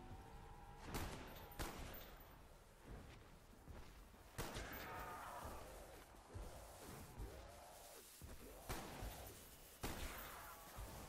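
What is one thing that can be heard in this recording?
Rifle shots ring out one at a time, sharp and loud.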